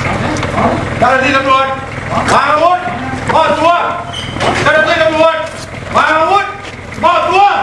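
A man shouts loudly and urgently nearby.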